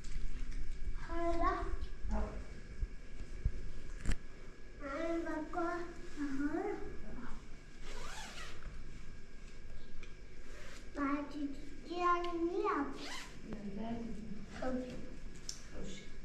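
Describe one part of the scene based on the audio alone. A young girl talks with animation nearby.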